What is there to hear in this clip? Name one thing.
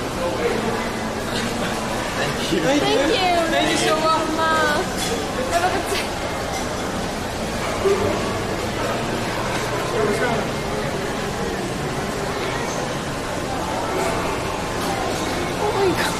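A young woman talks and laughs close to the microphone.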